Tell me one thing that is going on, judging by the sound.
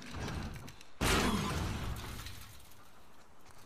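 A heavy metal door scrapes open.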